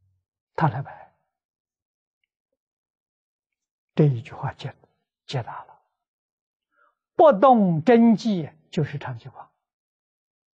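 An elderly man speaks calmly into a clip-on microphone, with long pauses.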